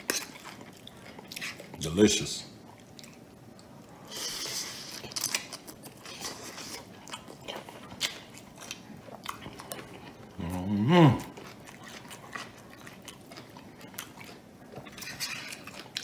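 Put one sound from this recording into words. A man chews food with soft smacking sounds.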